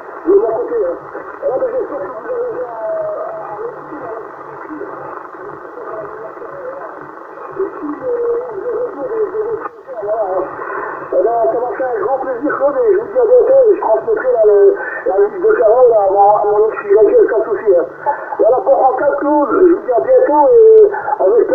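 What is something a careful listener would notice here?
A steady radio hiss runs underneath.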